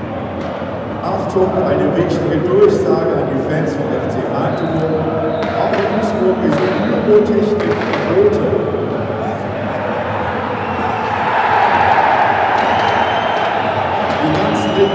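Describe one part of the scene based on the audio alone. Flares and firecrackers pop and crackle among the crowd.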